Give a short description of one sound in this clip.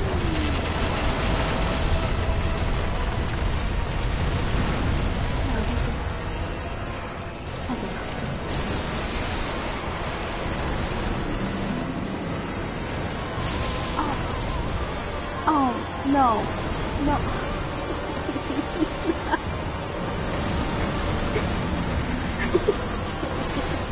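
A huge creature growls and rumbles deeply.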